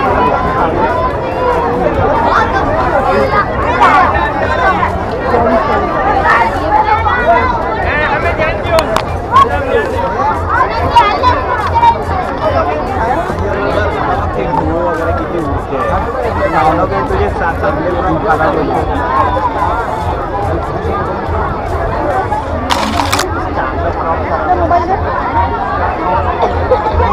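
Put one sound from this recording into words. A large crowd chatters all around outdoors.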